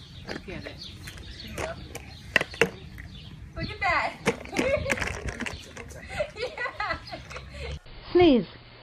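A plastic bottle crinkles and crackles as a dog chews it.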